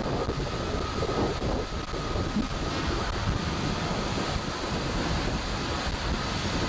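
Strong wind blows steadily and buffets loudly.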